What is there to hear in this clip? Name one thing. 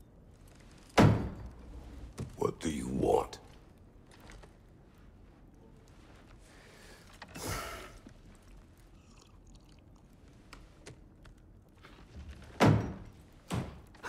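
A deep-voiced man speaks gruffly.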